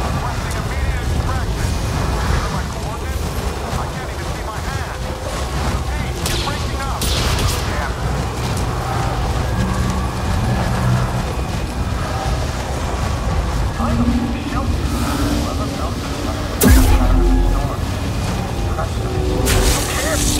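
Strong wind roars steadily in a dust storm.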